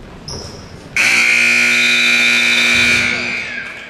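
A loud buzzer blares steadily in a large echoing gym.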